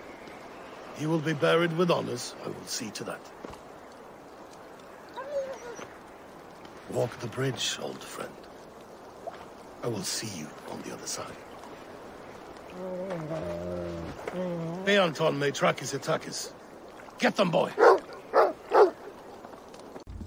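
A man speaks in a low, grieving voice, close by.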